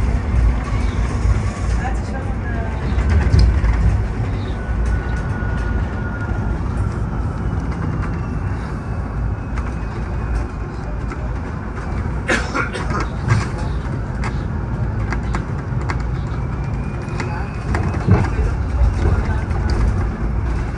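Loose fittings in a bus rattle and clatter as it rides over the road.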